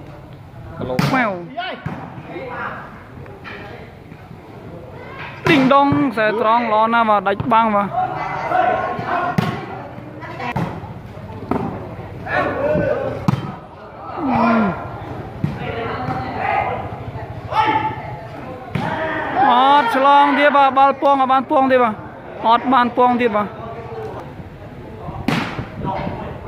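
A ball thuds sharply when kicked.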